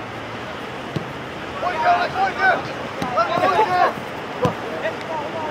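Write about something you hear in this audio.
A football thuds off a foot.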